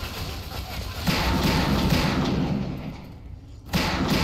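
Gunshots fire in rapid bursts at close range.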